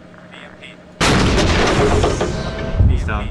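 A heavy explosion booms and rumbles in the distance.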